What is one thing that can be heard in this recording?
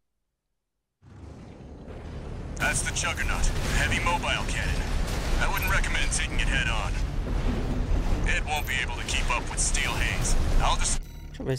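Game gunfire and explosions boom and crackle.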